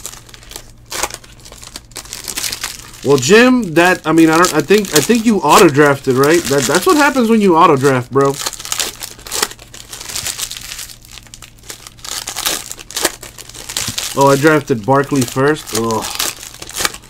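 Foil card packs crinkle and rustle as they are torn open.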